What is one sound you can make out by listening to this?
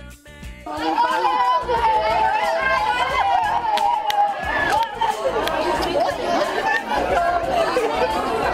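A crowd of children and adults chatter and cheer excitedly close by.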